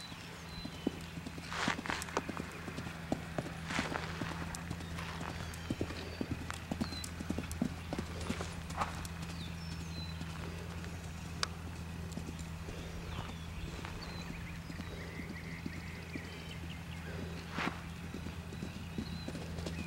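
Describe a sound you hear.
A horse canters over sand, its hoofbeats thudding.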